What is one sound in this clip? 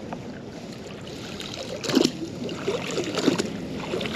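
A heavy object splashes as it is pulled out of the water.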